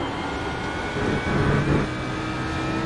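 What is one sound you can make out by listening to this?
Tyres rumble over a kerb.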